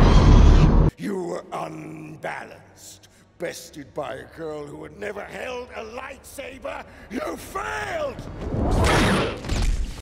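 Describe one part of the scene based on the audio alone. An elderly man speaks slowly and menacingly, close by.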